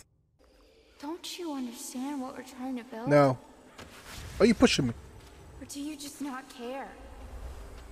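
A young woman speaks softly and tensely.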